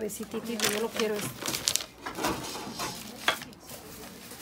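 Paper crinkles and rustles.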